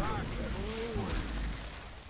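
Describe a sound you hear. A magic energy beam blasts with a loud rushing roar.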